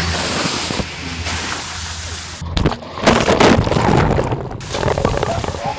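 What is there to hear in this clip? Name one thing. Water splashes down from a bucket onto a person.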